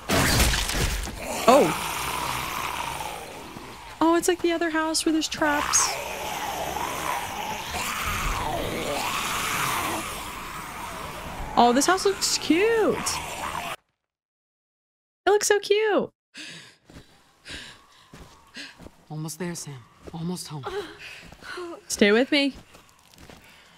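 A young woman talks close to a microphone.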